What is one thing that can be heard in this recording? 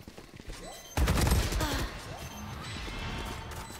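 A loud magical burst rings out from a video game.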